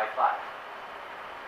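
A young man speaks calmly close to a microphone.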